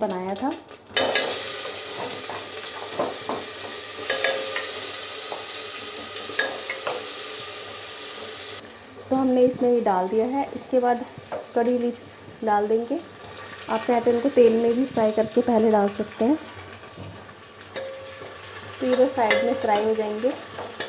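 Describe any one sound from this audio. Hot oil sizzles and crackles in a pot.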